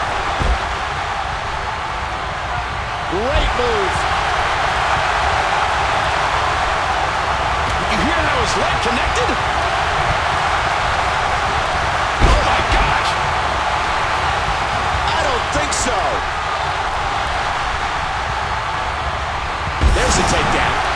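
Heavy thuds of bodies slamming onto a wrestling mat.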